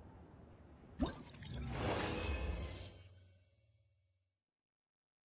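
A bright shimmering chime rings out with a whoosh.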